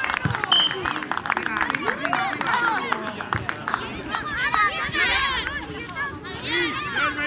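Children shout and call out excitedly outdoors.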